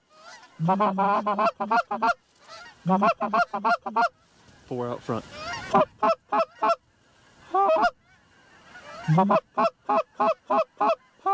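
A hunter blows a goose call close by, in short, repeated honking bursts.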